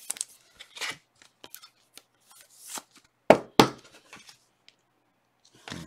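Plastic card holders click and rustle in hands.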